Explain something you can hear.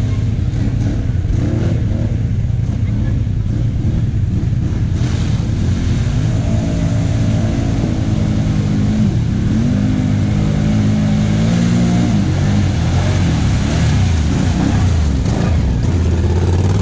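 An engine rumbles low and steady close by.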